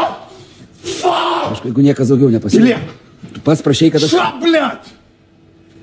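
A man shouts loudly and angrily nearby.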